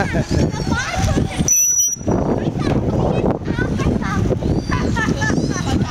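A young girl laughs with delight close by.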